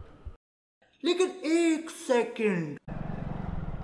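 A young man exclaims in surprise close to a microphone.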